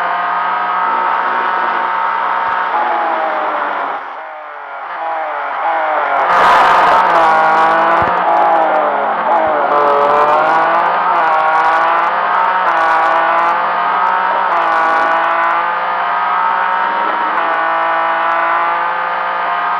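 A racing car engine roars loudly, its pitch rising and falling as the gears shift.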